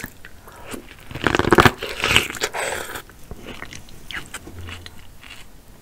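A woman chews and smacks her lips loudly close to a microphone.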